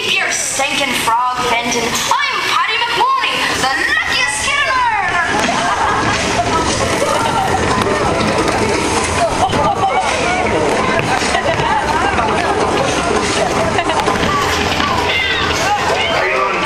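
Loud music and sound effects play through loudspeakers.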